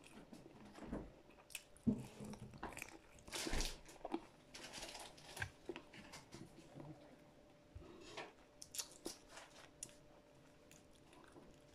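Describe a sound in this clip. A woman bites into crisp leaves with a crunch.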